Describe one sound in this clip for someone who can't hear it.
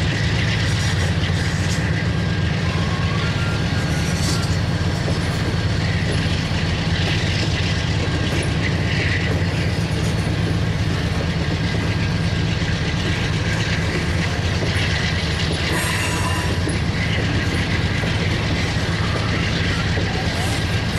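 Train wheels squeal and clank on the track.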